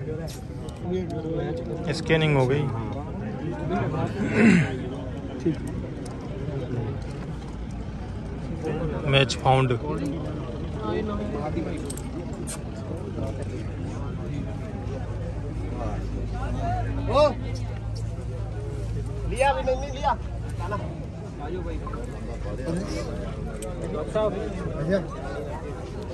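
Men talk nearby in a crowd, outdoors.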